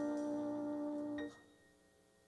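A saxophone holds a long note in a large hall and then stops.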